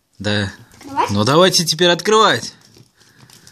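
A young boy speaks excitedly, close by.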